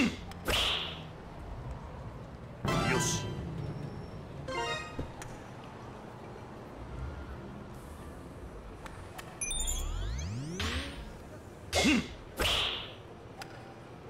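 A golf club swishes through the air and strikes a ball.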